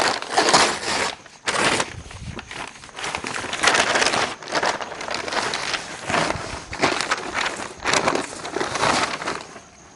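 Stiff paper crinkles and rustles as it is handled.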